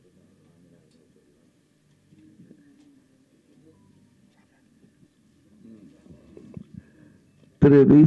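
A middle-aged man laughs softly into a microphone.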